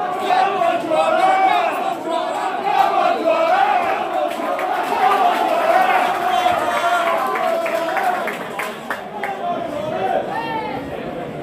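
A large crowd of men sings a chant loudly and close by, outdoors.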